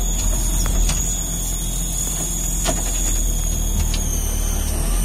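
An off-road vehicle's body rattles and knocks over bumps.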